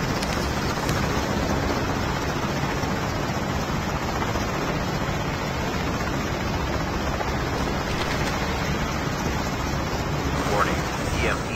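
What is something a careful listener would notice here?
An aircraft engine hums and whirs steadily.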